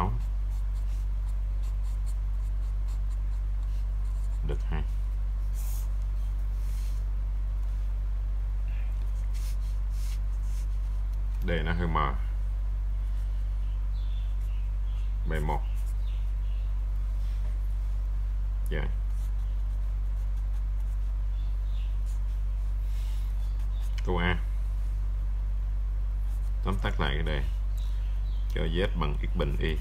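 A marker pen scratches across paper.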